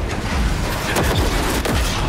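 A gunshot fires close by.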